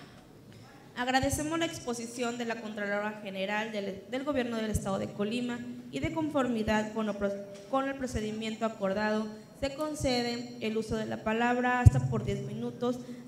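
A woman speaks calmly into a microphone, heard over a loudspeaker in a large room.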